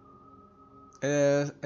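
A short electronic menu tone sounds.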